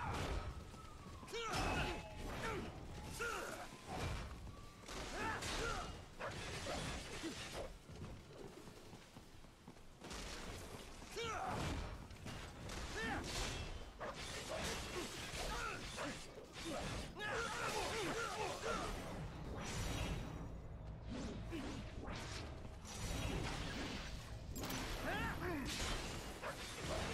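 Metal blades clash and slash in quick bursts.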